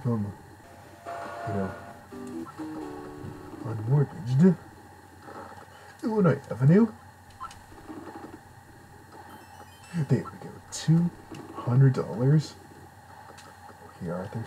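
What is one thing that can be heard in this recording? Short electronic game beeps and tones play.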